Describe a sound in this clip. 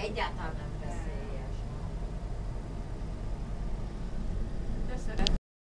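A vehicle's engine rumbles low and steady from inside.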